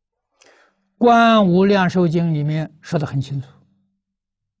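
An elderly man lectures calmly through a microphone.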